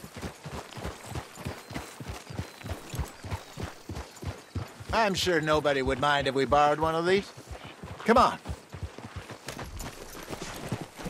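Horse hooves clop steadily on gravel.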